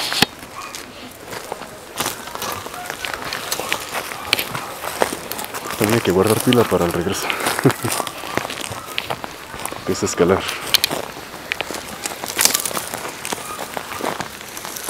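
Footsteps crunch through dry leaves on the ground.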